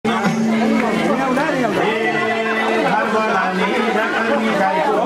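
A crowd of men and women chatter and call out all around, close by.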